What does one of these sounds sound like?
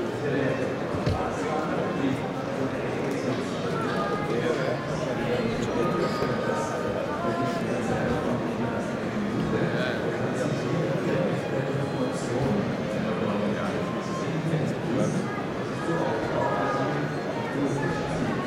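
A crowd of adults murmurs and chatters all around in a large echoing hall.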